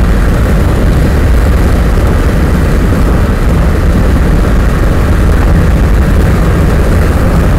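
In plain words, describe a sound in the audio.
A vehicle drives steadily along a road.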